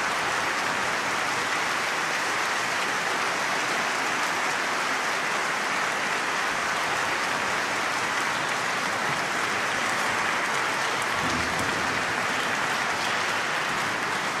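A large audience applauds steadily.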